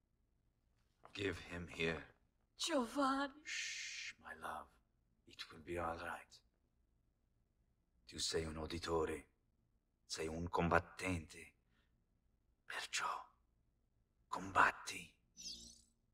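A man speaks softly and tenderly, close by.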